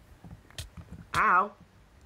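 Fire crackles briefly.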